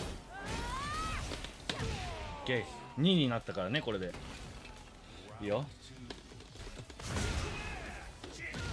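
Punches and kicks land with heavy thuds in a fighting game.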